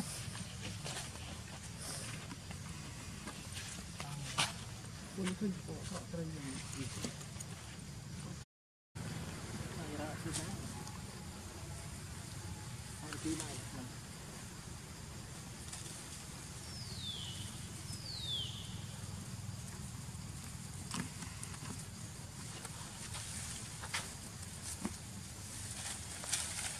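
Monkeys scuffle and rustle on grass and dirt.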